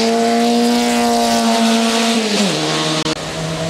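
A racing car engine roars loudly and drops in pitch as the driver shifts down.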